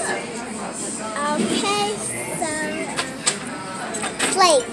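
A young girl talks and squeals excitedly close by.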